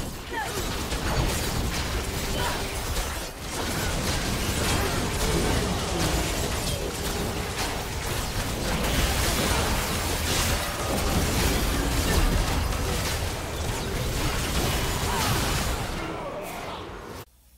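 Magic blasts and weapon strikes crash together in a frantic battle.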